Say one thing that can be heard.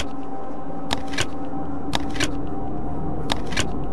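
A combination lock's dial clicks as it turns.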